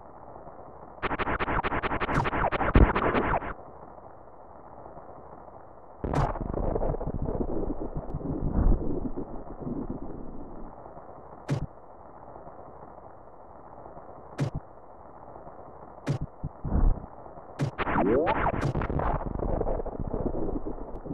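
Short electronic whooshes sound as a game character jumps and spins.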